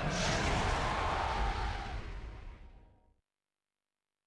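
A loud roaring blast bursts and slowly fades away.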